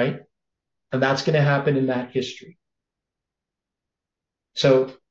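An elderly man speaks calmly into a close microphone, pausing between phrases.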